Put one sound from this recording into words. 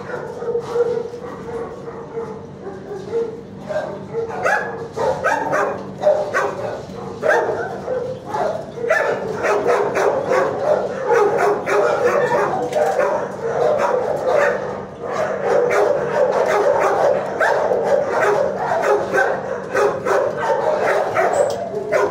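A dog licks and smacks wetly at close range.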